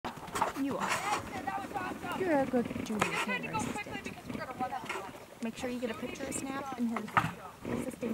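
Horse hooves thud softly on dirt as a horse canters.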